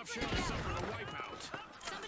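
Debris and glass shatter and scatter.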